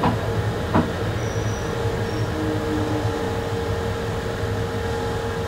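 A train rumbles steadily along the tracks with a low motor hum.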